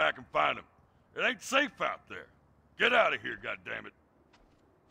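An elderly man shouts angrily.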